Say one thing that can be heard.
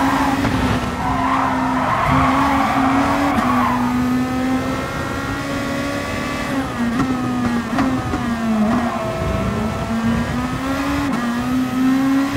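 A racing car engine roars at high revs, dipping briefly in pitch now and then.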